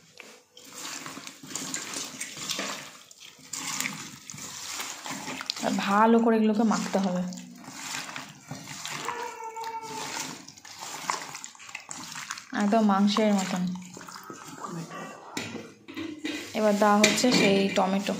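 Hands squish and squelch through wet food in a metal bowl.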